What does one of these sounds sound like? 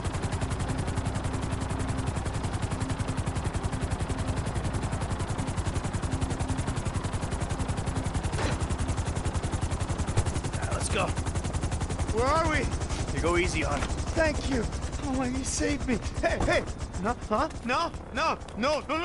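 A helicopter's rotor chops rapidly and steadily, with a low engine drone.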